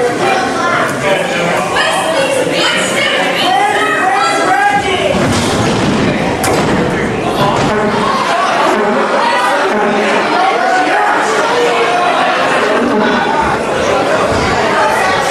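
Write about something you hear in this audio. A crowd chatters and murmurs in the background.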